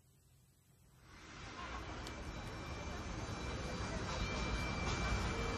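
Cymbals shimmer on a drum kit.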